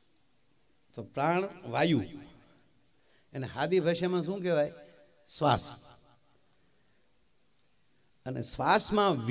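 A middle-aged man sings and speaks expressively into a microphone, heard through loudspeakers.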